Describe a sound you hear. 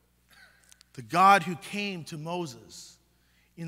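A man chants slowly in a large echoing hall.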